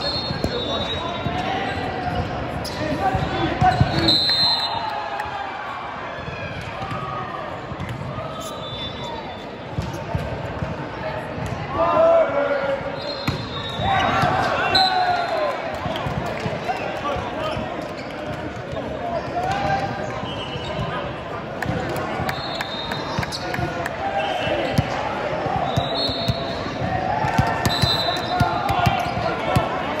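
Volleyball players' shoes squeak on a hardwood court.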